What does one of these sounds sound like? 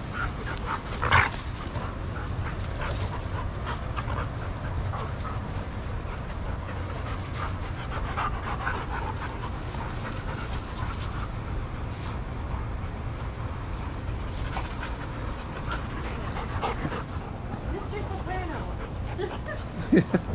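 A dog gives a short yelp.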